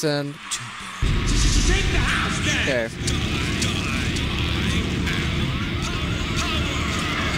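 Electronic game music plays loudly.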